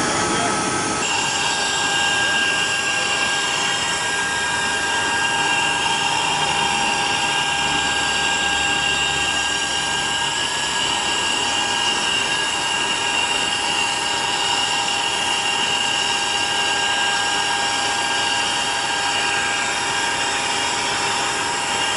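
An aircraft's engine whines steadily and loudly nearby.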